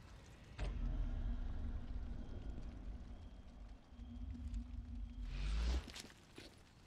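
A fire roars with a deep rumble.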